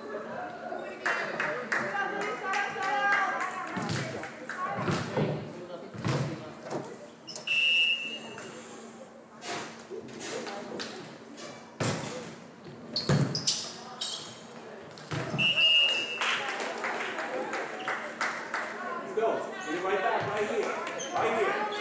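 Young women on the court shout and call out to each other.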